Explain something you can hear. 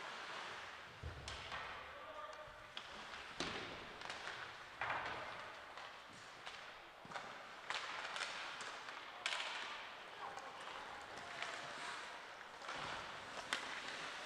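Hockey sticks clack sharply against the puck.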